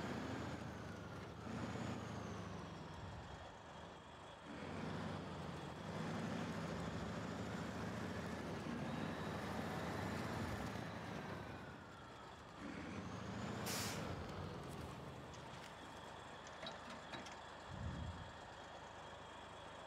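A heavy diesel truck engine rumbles and revs as the truck drives.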